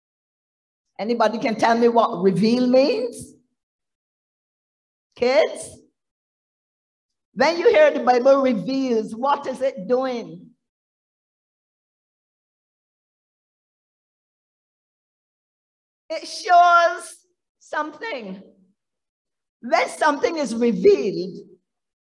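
An elderly woman speaks with animation through a microphone.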